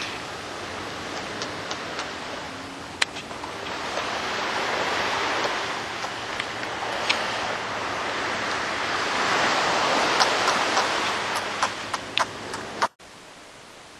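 Sea lions shift and rub against each other in the sand.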